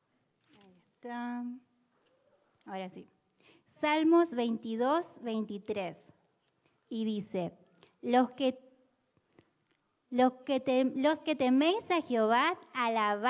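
A young woman speaks into a microphone, loud and close, with pauses.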